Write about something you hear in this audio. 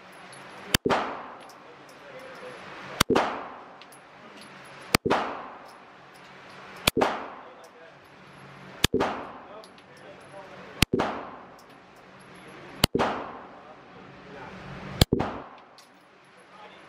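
A handgun fires single shots, each one echoing through an indoor range.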